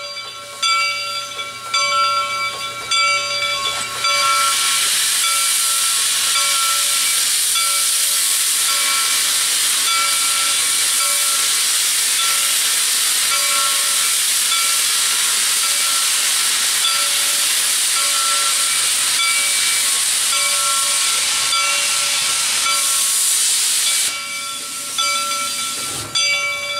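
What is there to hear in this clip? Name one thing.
A steam locomotive's whistle blows in long, repeated blasts.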